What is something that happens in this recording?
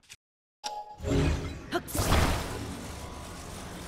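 A bright magical whoosh swells and hums.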